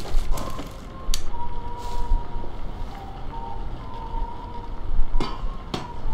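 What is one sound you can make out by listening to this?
A metal ladder clanks as it is picked up and carried.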